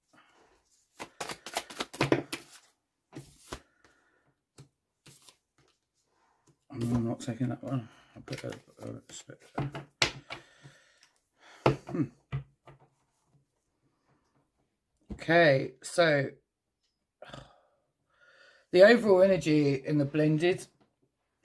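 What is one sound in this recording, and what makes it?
Cards slide and tap on a wooden table.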